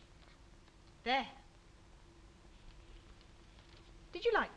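A young woman speaks in short, lively bursts close by.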